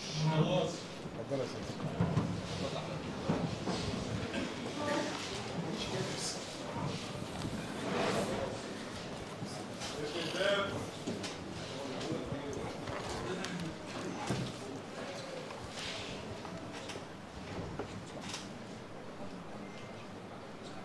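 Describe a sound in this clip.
Many people murmur and talk at once in a room that echoes.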